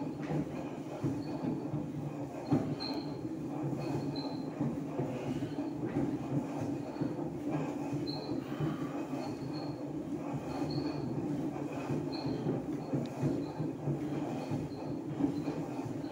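An exercise machine hums and creaks steadily.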